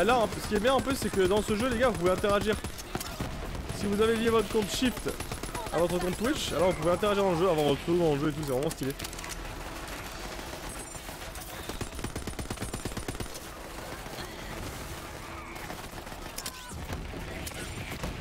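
Gunfire rattles in quick bursts from a video game.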